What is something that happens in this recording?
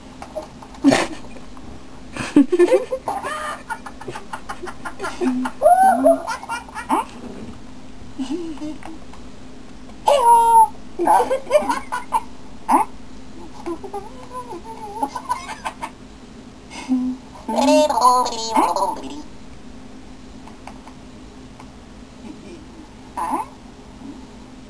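A young child talks close by.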